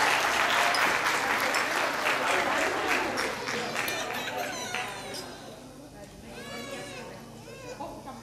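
Glasses clink together in a toast.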